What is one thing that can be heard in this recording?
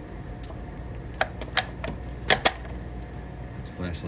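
A plastic cup clicks down onto a metal surface.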